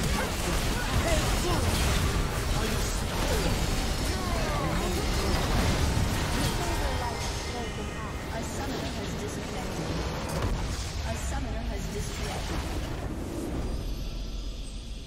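Spell blasts, clashes and impacts crackle in a dense, loud game battle.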